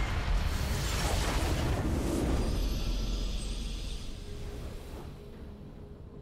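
A loud magical burst swells and rings out, then fades.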